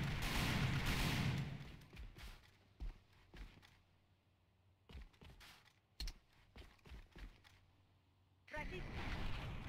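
Footsteps tread quickly over hard ground.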